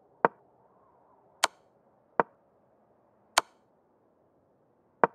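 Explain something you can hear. Short sharp clicks sound as game pieces are moved.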